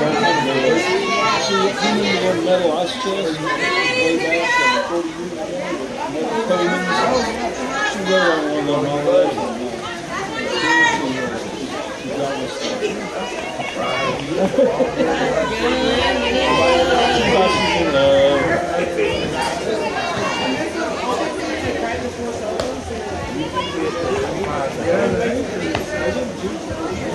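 Young women cheer and chant outdoors at a distance.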